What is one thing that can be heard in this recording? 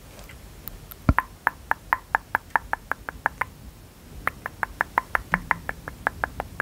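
A brush scratches softly back and forth close up.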